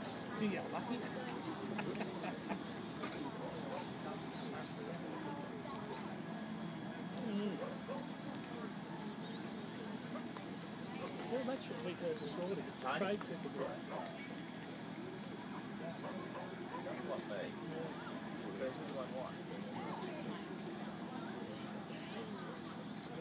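A crowd of men and women chatters in the distance outdoors.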